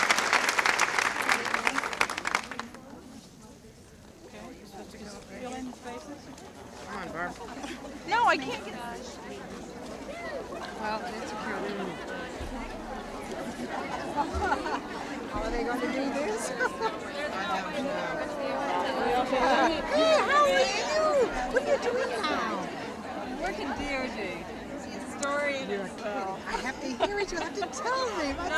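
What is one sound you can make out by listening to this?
A large crowd of women and men chatters and cheers outdoors.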